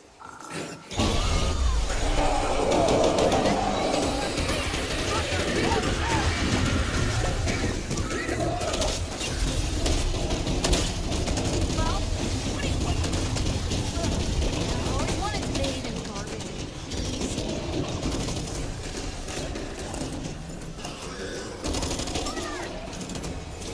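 Rapid gunfire rattles in loud bursts.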